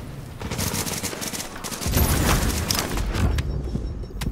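Gunfire rattles in rapid bursts nearby.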